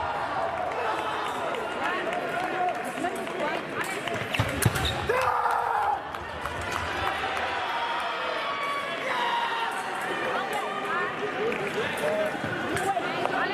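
Fencers' shoes squeak sharply on the floor.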